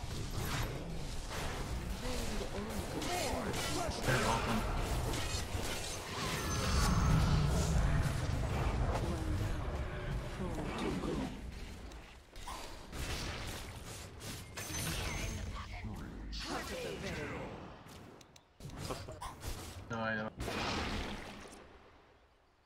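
Game battle effects crackle and burst in quick bursts.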